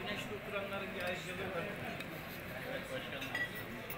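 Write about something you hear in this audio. A fork scrapes against a plate.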